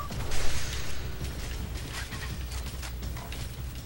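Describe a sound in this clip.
A weapon clicks and clatters as it is reloaded.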